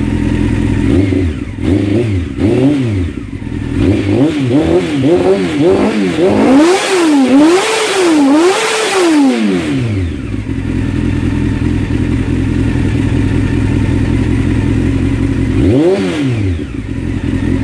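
A motorcycle engine revs up and down several times.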